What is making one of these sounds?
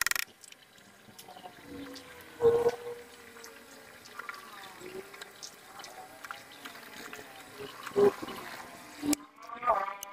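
A drill press whirs as it bores into a metal bolt.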